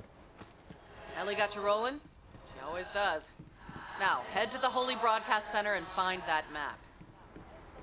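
A woman speaks with animation over a radio.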